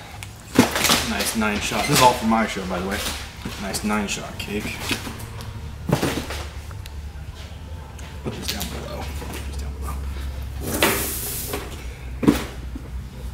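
Cardboard boxes thud as a young man sets them into a metal cart.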